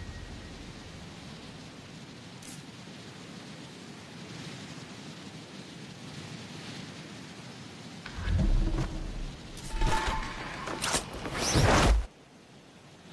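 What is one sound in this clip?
Wind rushes steadily during a parachute descent.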